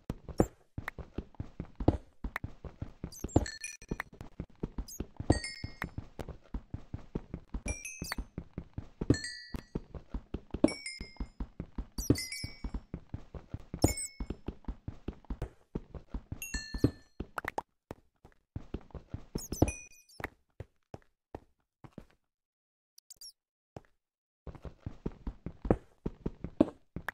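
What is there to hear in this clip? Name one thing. A pickaxe taps rapidly against stone.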